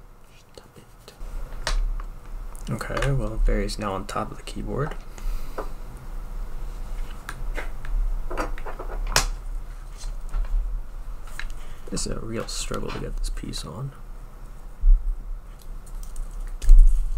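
Small plastic parts click and tap against each other.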